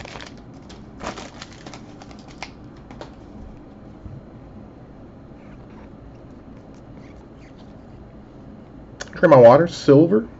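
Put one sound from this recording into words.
Trading cards slide and click against each other.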